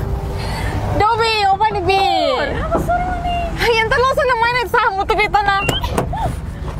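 A young woman calls out cheerfully.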